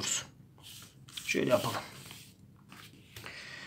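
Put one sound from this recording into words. A sheet of paper rustles as it is set down.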